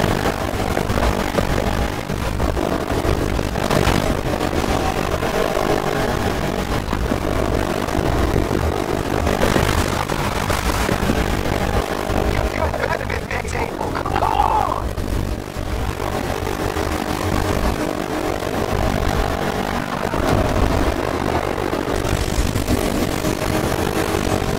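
A V8 muscle car engine roars at full throttle, shifting through gears.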